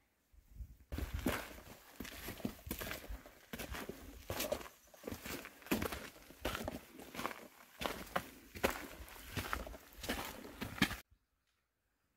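Footsteps crunch on a gravel trail.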